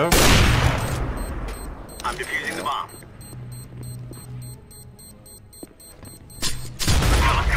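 A bomb beeps in quick, steady pips.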